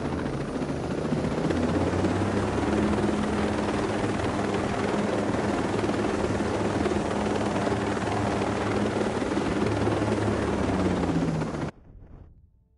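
A helicopter's rotor thumps loudly and steadily as its engine roars.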